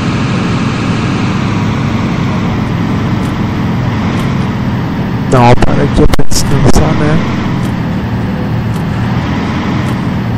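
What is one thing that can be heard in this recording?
A truck engine rumbles steadily while driving on a highway.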